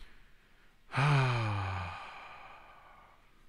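A man lets out a long, drawn-out groan.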